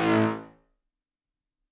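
A synthesizer lead note plays briefly and fades out.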